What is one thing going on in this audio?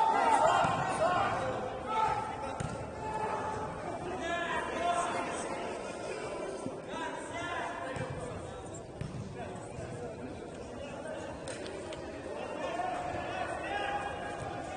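Men shout and call out across a large echoing indoor hall.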